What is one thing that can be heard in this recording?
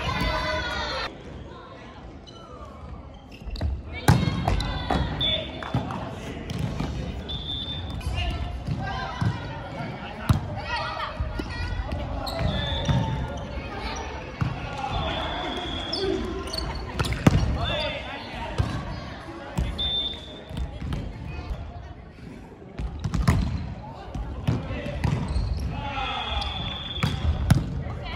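Players call out and shout to each other.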